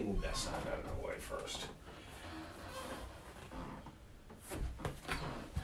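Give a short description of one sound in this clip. A stiff board rustles and thumps as it is handled.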